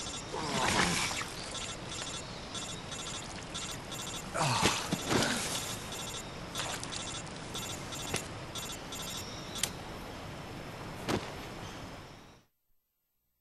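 A man groans and gasps in pain close by.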